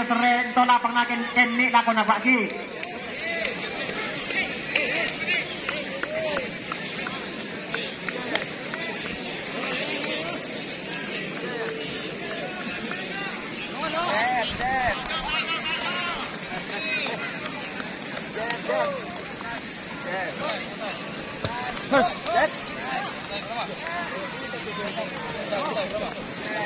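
A large crowd talks and shouts outdoors.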